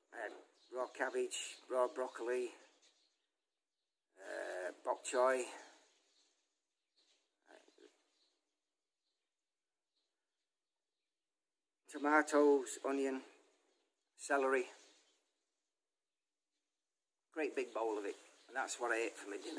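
An elderly man talks calmly and close up, with pauses.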